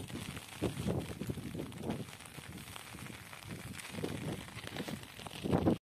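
Wind gusts and buffets against the microphone outdoors.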